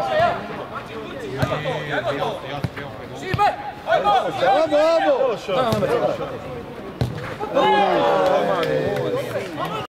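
Men shout and call out to each other across an outdoor pitch.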